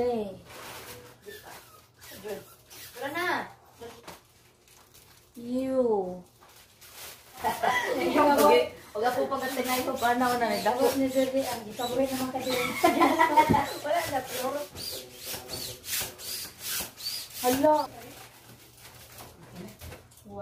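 Plastic foil crinkles and rustles.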